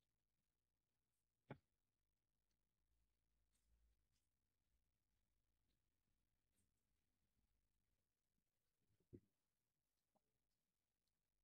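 Footsteps tap softly on pavement.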